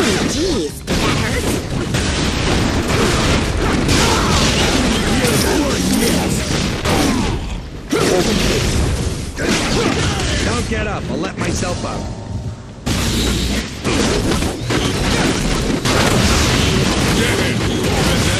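Blasts, punches and impact effects crash in a fast fight.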